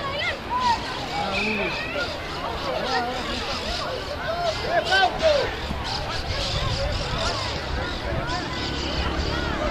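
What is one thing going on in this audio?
Young boys shout and call out across an open playing field.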